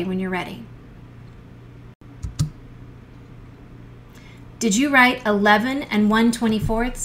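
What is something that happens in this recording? A woman speaks calmly and clearly into a microphone, in short phrases with pauses.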